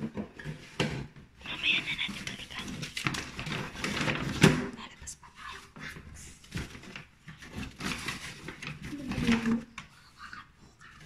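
Paper and cardboard rustle and crinkle close by.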